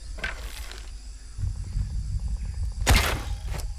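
A bowstring creaks as it is drawn back.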